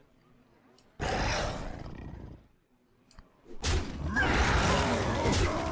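Fantasy game creatures clash with crunching, rumbling impact effects.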